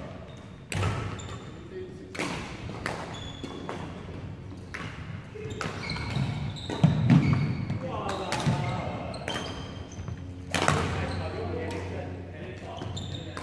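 Sports shoes squeak on a wooden floor.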